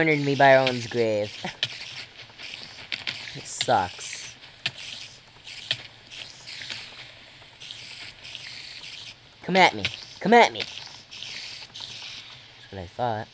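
A giant spider hisses.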